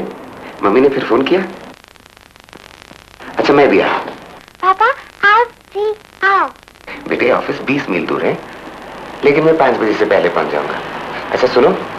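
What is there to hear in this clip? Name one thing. A man talks on the phone in a cheerful, friendly voice.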